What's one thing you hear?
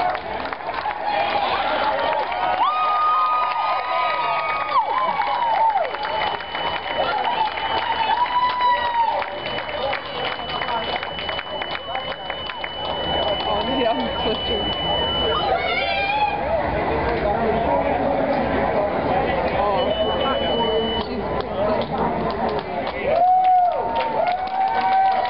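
A crowd of spectators claps hands.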